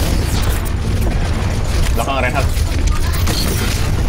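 A futuristic beam weapon hums and crackles as it fires.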